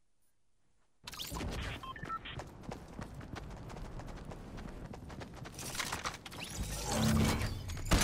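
A game character's footsteps run across grass.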